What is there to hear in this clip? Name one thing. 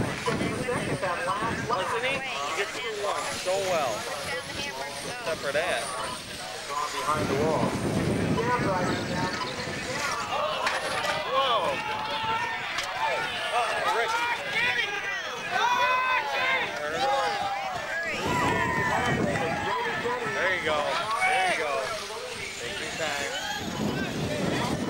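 Small model car engines whine and rev shrilly as the cars race past.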